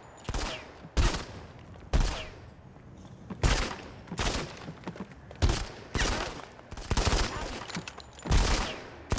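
Rifle shots crack in short bursts and echo.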